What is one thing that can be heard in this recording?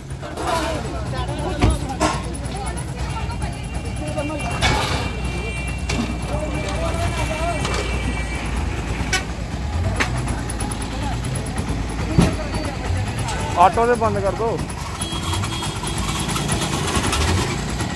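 A crowd of men talk and call out nearby, outdoors.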